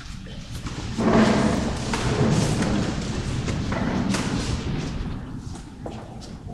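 A crowd shuffles and murmurs in an echoing church.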